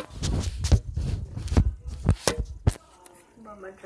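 Loud rustling and bumping sound close to the microphone.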